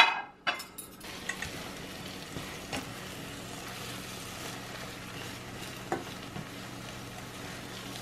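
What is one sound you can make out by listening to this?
Eggs sizzle softly in a frying pan.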